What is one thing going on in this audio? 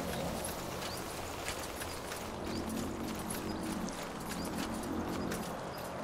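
Footsteps tread along a stone path.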